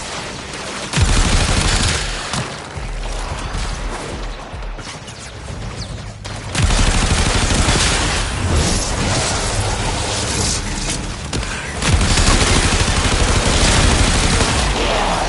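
Loud blasts and crackling energy bursts go off.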